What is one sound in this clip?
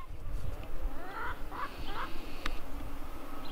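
A chicken clucks softly nearby.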